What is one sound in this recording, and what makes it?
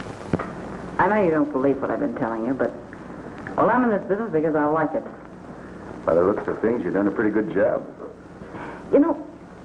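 A woman speaks calmly.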